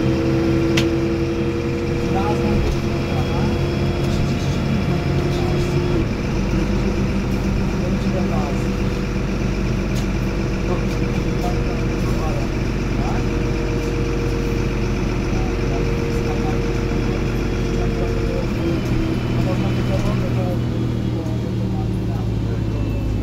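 A bus rattles and creaks as it rolls along.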